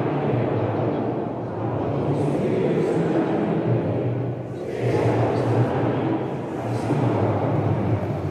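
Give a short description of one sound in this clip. A congregation of men and women sings together in a large echoing hall.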